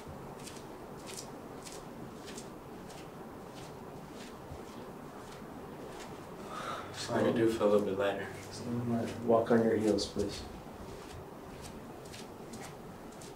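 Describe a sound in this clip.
Bare feet pad softly across a floor.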